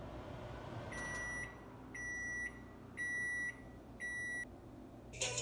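A microwave oven beeps several times when it finishes.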